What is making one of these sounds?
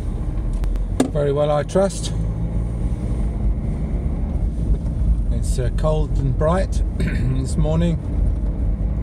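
A middle-aged man speaks close to the microphone.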